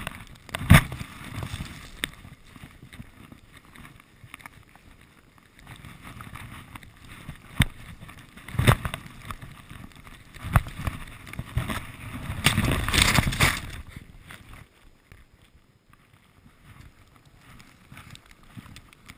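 Wind rushes past a skier outdoors.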